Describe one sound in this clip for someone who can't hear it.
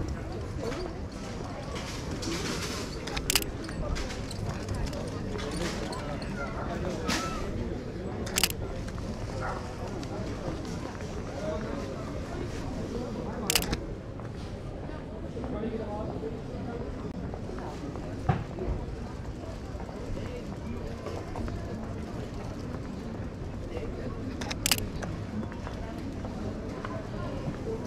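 A busy street murmurs with distant voices and footsteps outdoors.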